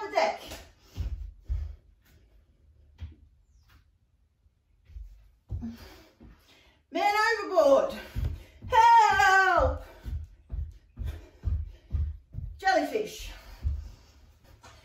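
Feet thud on the floor in quick steady hops.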